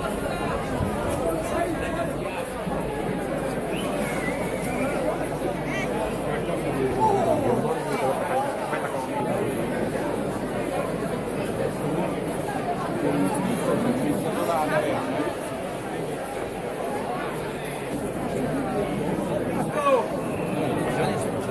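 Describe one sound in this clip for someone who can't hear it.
A large crowd of men and women chatters loudly outdoors.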